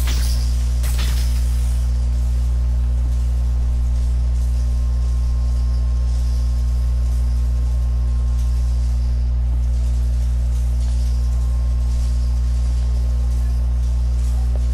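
A deep electrical hum drones steadily.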